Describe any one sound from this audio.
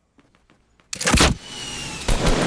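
A loud blast booms once.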